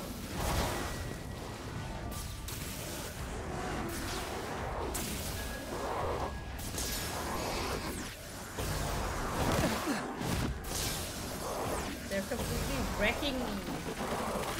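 Crackling energy blasts burst and whoosh repeatedly.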